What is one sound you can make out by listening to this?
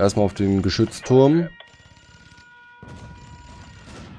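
Laser shots zap in quick bursts.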